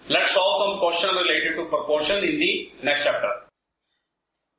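A man speaks calmly and clearly, as if explaining, close to a microphone.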